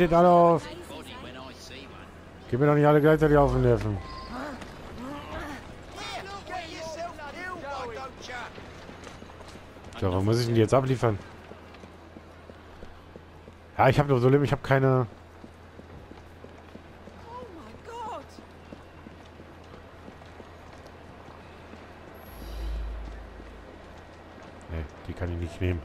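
Footsteps tread steadily on cobblestones.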